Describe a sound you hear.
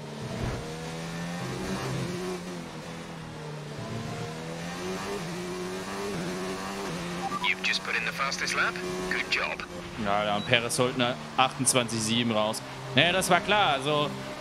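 A racing car engine whines loudly, rising and falling in pitch as it shifts gears.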